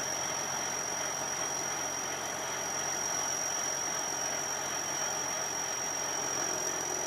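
A rice combine harvester's diesel engine runs while it unloads grain through its auger.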